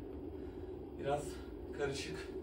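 A young man pants heavily.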